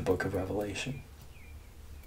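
An elderly man speaks calmly, close to the microphone.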